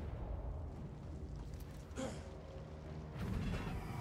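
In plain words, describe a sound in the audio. A magical shimmer sparkles and chimes.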